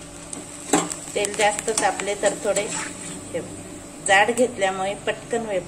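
Batter sizzles in hot oil.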